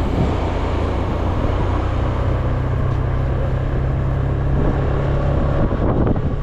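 Wind rushes past a microphone outdoors.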